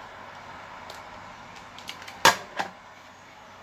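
Buttons click on a handheld radio keypad.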